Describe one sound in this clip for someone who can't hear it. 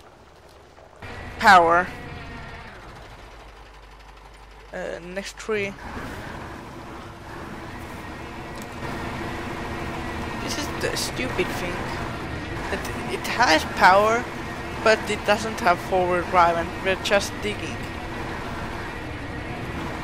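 A truck engine rumbles steadily and grows louder as it labours uphill.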